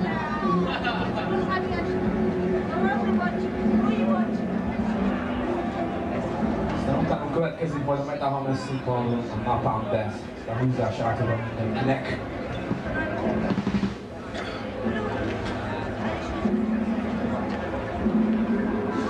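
Loud live band music with electric guitars plays in an echoing hall.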